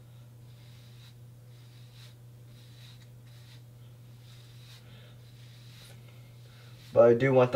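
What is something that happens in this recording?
Hands rustle through hair.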